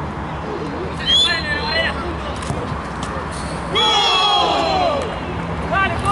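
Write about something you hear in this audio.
Men cheer loudly.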